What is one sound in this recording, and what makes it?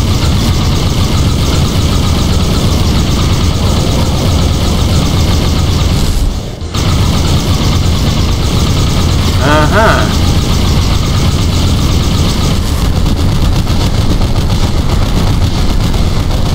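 A rifle fires rapid bursts of loud shots.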